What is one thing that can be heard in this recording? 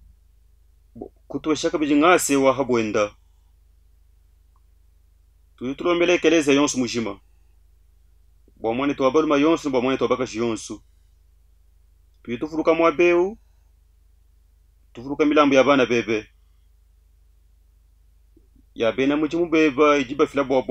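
A middle-aged man speaks calmly and solemnly into a close microphone, in phrases with pauses between them.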